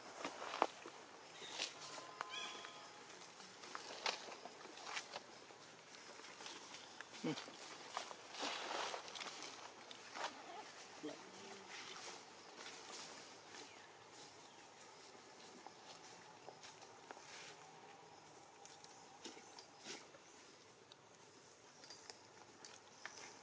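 Dry leaves rustle and crackle as monkeys move about.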